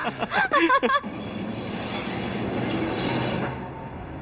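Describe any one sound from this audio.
A tram rumbles along its tracks through street traffic.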